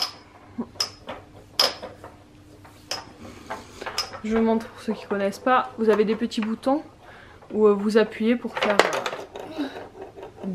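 Plastic toy pieces click and clack as a child handles them.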